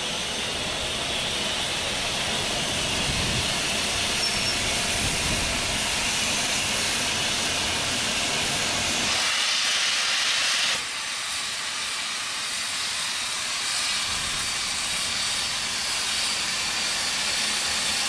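A steam locomotive idles nearby with a steady rumbling hiss.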